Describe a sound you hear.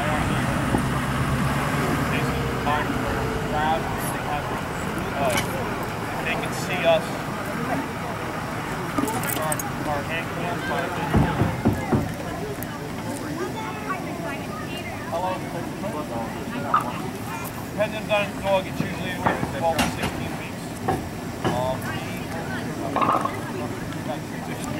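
A man talks calmly outdoors at a short distance.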